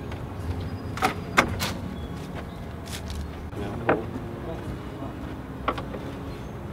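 A pry bar knocks and clanks against wooden pallets.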